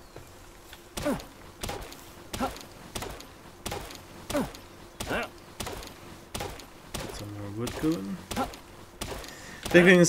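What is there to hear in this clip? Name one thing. An axe chops into a tree trunk with repeated sharp knocks.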